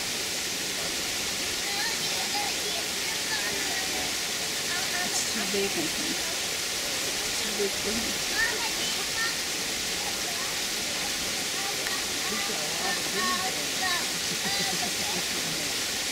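Shallow water splashes softly as a heron jabs at a flapping fish.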